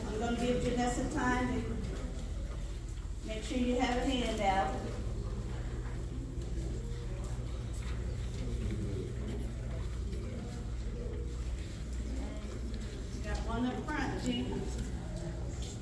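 A woman speaks loudly near the microphone in a large room.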